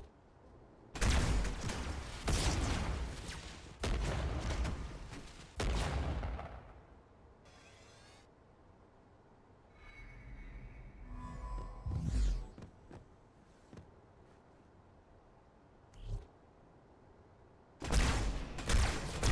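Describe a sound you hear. Loud gunfire bursts out in short volleys.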